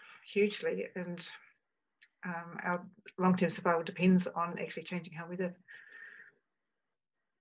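An older woman speaks calmly over an online call.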